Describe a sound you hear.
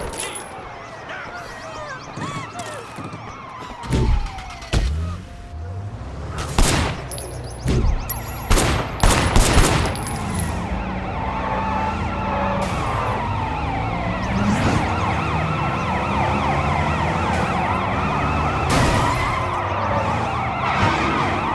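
Police sirens wail and rise and fall.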